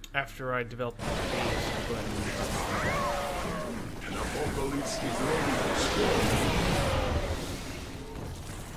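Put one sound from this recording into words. A huge blast roars and crackles.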